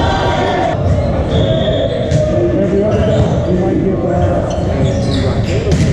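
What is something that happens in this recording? A crowd of young people chatters and calls out in a large echoing gym.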